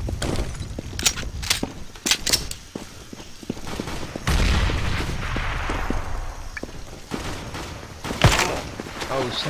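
Sharp pistol shots crack in quick bursts.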